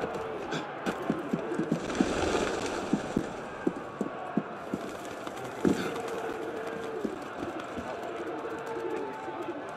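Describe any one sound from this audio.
Footsteps patter quickly across a roof.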